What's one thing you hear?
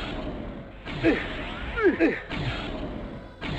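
A blade swishes through the air with a sharp whoosh.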